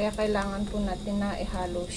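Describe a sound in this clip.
A spoon scrapes through cooked rice in a metal pot.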